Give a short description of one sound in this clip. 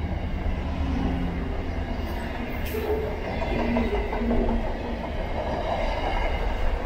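Train wheels squeal faintly on the rails.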